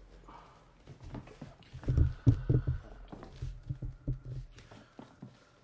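Clothing rustles and bumps as a body shifts.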